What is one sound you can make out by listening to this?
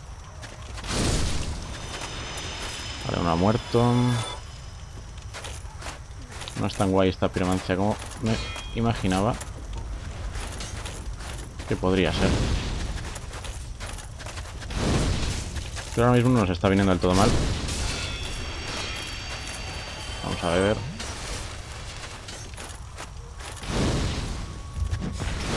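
Flames burst with a roaring whoosh.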